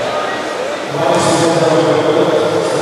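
A crowd cheers and murmurs in a large echoing hall.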